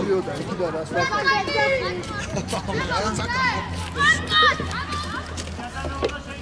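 Children shout on an outdoor sports field.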